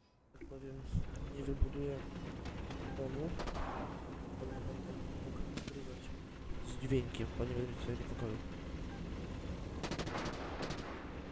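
Tank guns fire with loud booms.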